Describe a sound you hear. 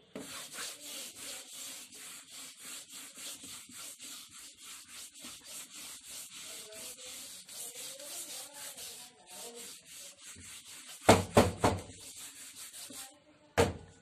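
A board eraser rubs rhythmically across a whiteboard.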